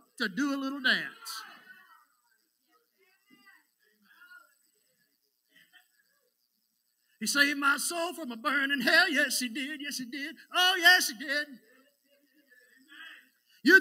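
A middle-aged man preaches into a microphone with animation.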